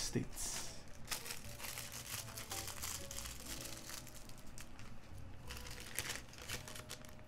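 A small plastic bag rustles.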